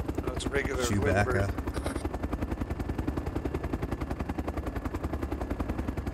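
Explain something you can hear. A small gyrocopter engine drones as its rotor chops the air.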